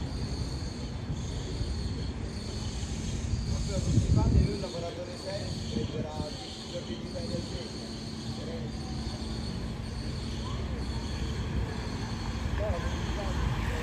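A crowd of men and women murmurs and chats outdoors.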